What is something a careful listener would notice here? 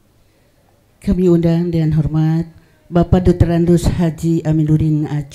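A man recites loudly through a microphone.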